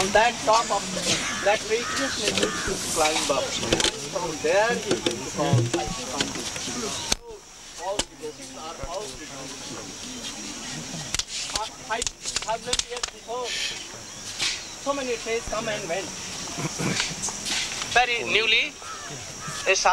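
A crowd of men and women talk and chatter close by outdoors.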